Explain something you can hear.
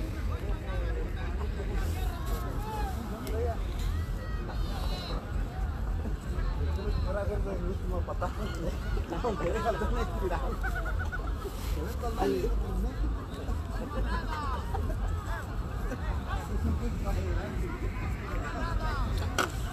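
A crowd of men chatters and calls out nearby, outdoors.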